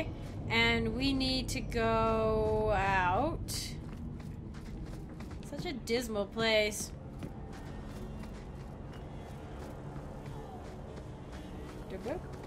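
Footsteps tread on stone ground.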